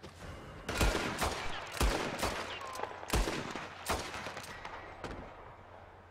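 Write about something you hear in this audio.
Gunshots crack loudly, echoing between the bursts.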